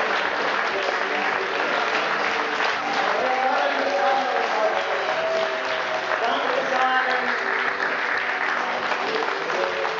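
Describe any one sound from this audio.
A woman claps her hands.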